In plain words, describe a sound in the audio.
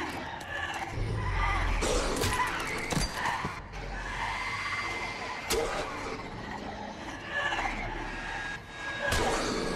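Bodies thud and strike in a scuffle.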